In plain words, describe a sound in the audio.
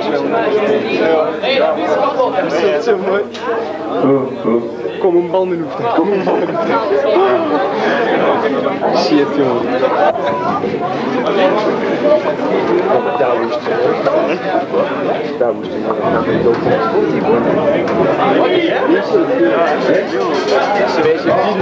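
A rock band plays loudly, heard in a crowded echoing room.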